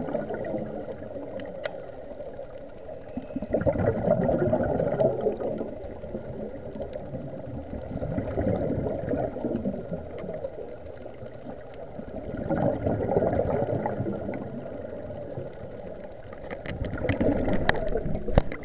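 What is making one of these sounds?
Divers breathe through regulators underwater, with bubbles rushing out in bursts.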